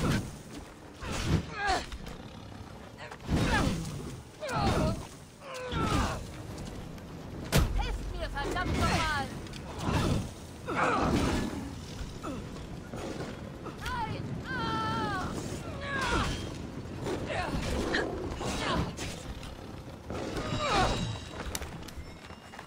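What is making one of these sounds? A lion growls and snarls.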